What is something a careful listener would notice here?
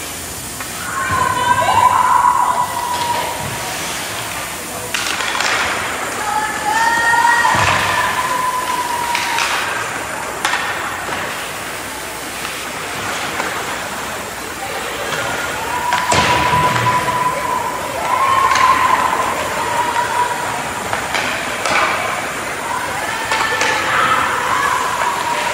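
Young players shout to each other across the ice.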